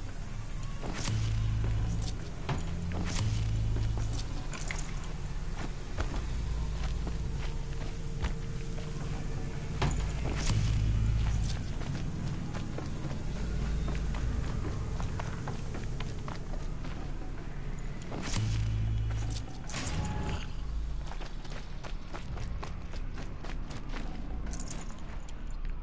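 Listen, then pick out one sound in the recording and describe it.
Small items clink as they are picked up.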